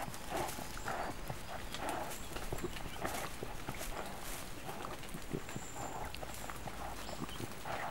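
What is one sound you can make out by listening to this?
Dry bedding rustles as an animal shifts in its nest.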